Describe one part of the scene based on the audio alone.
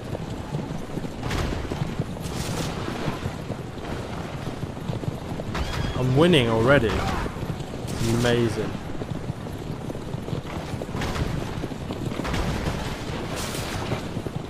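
Wooden carriages crash and scrape against each other.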